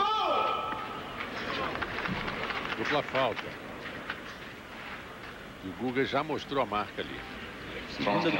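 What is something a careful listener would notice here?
A crowd murmurs softly in a large open stadium.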